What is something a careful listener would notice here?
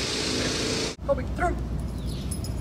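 A man calls out a short command outdoors.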